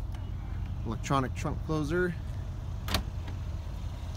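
A car trunk lid thumps shut.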